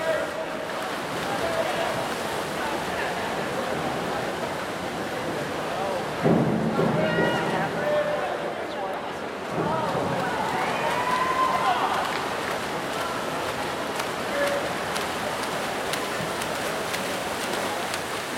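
Swimmers splash through the water racing freestyle in a large echoing hall.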